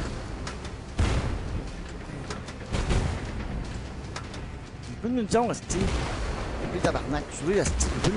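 Tank cannons fire with loud booms.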